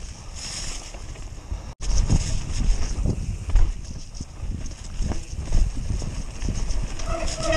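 Wind rushes past a microphone outdoors.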